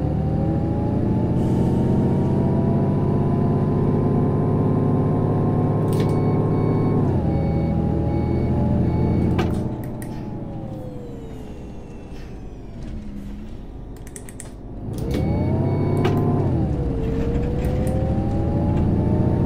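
A bus engine drones loudly, revving up and down as the bus drives along.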